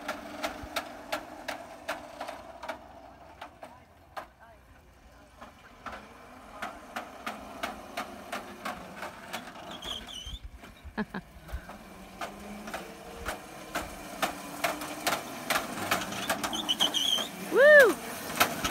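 A small electric kart hums steadily as it rolls closer.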